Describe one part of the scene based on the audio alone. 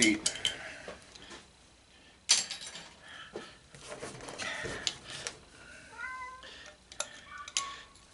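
Metal parts clink and scrape.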